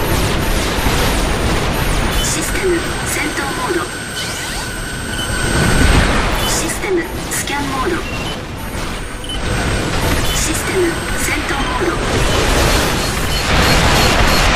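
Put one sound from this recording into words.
A mech's thrusters roar steadily.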